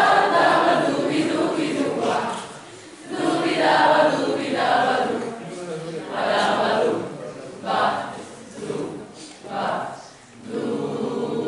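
A choir of young voices sings together in a large echoing hall.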